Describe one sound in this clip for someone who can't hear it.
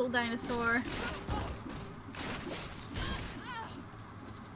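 Objects smash and clatter apart.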